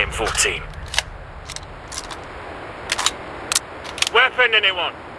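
Single gunshots crack now and then.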